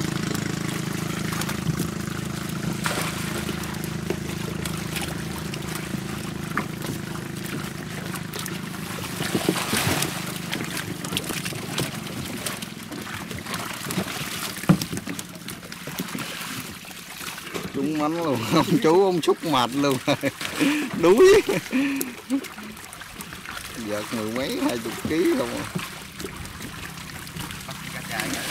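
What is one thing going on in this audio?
Fish splash and thrash in shallow water.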